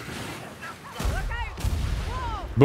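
A gun fires with a loud blast.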